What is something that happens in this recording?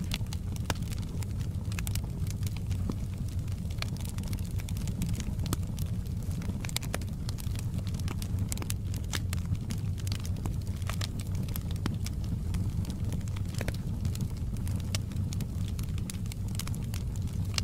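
A wood fire crackles and pops steadily.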